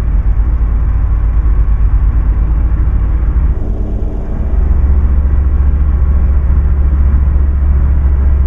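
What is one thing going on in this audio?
A truck's diesel engine drones steadily, dipping briefly before growing louder.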